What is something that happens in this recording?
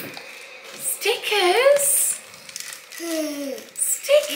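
A young child talks in a high, sing-song voice close by.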